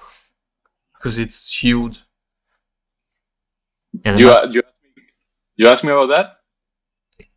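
A man speaks calmly through an online call, in short phrases.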